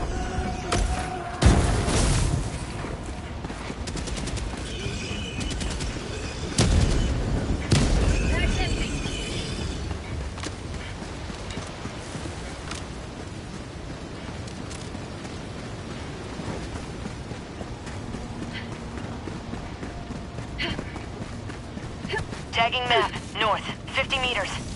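Footsteps crunch through undergrowth as a soldier runs.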